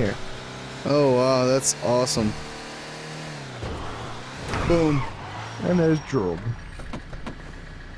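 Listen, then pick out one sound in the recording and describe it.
A car engine hums as a car drives along.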